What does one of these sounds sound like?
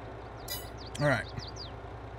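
A man speaks briefly and casually into a microphone.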